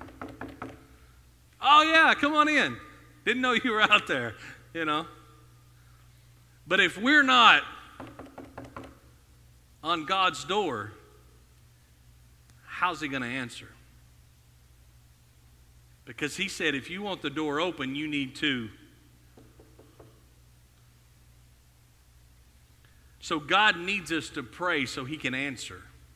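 A man speaks calmly through a microphone in an echoing room, pausing often.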